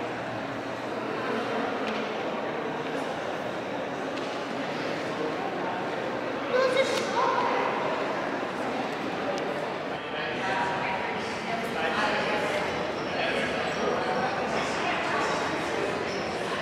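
A crowd of people chatter in the distance in a large echoing hall.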